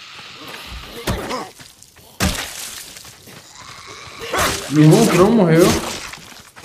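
Blows land with heavy thuds during a fight.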